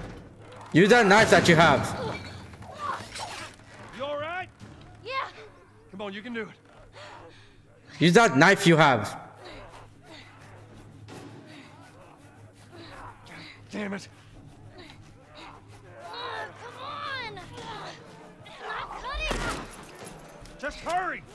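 A young man talks and exclaims with animation, close to a microphone.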